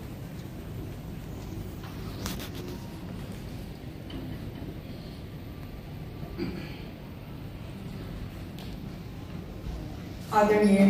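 A man speaks through a loudspeaker in a large hall.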